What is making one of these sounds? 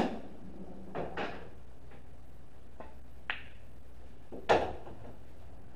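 Pool balls clack together and knock against the cushions.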